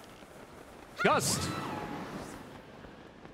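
A sudden gust of wind whooshes and fades.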